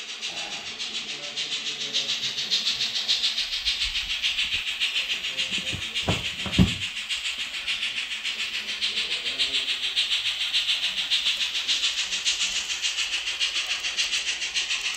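A model train motor hums with a steady whine.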